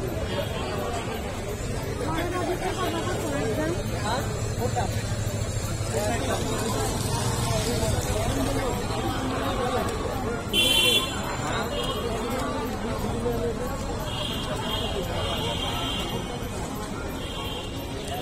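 A crowd of men and women talk and shout all around outdoors.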